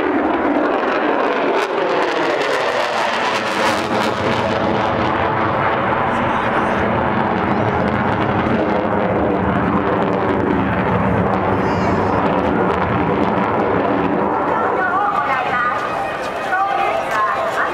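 A jet plane roars loudly overhead, its pitch sliding as it passes and fades.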